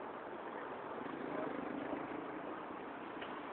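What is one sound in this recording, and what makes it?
A motorbike engine hums by.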